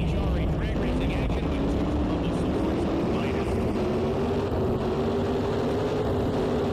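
A drag racing car engine roars and rises in pitch as the car accelerates.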